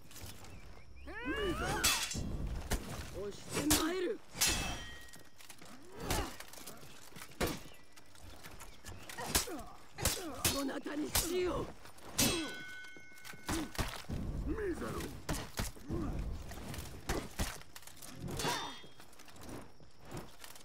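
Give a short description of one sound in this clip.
Metal blades clash and ring sharply, again and again.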